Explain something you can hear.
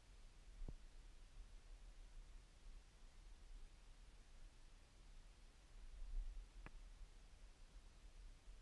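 A kayak paddle dips and splashes softly in calm water.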